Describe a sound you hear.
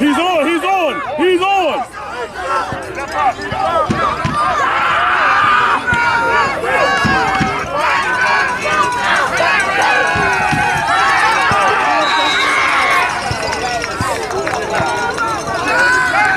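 A crowd of people shout and cheer loudly outdoors.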